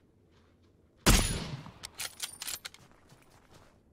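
A rifle shot cracks loudly and echoes away.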